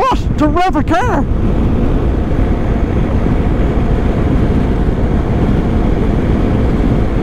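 Wind rushes and buffets loudly past a moving motorcycle.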